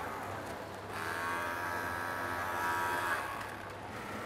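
A sewing machine whirs steadily at high speed.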